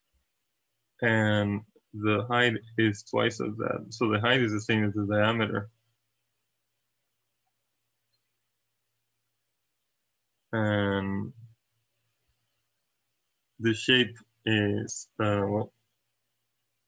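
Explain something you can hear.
A young man speaks calmly into a microphone, explaining.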